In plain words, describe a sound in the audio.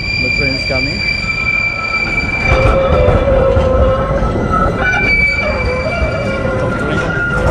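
A tram rolls past with a high, steady squeal.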